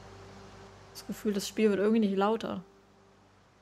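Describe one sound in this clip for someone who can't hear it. A young woman speaks briefly and with animation close to a microphone.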